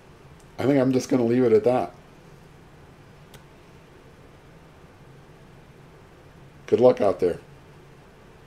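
A middle-aged man speaks expressively, close to a microphone, in short bursts.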